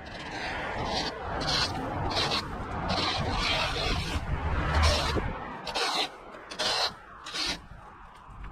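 A rake scrapes and rustles across grass clippings on the ground.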